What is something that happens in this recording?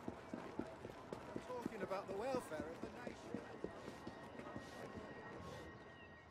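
Quick footsteps run on cobblestones.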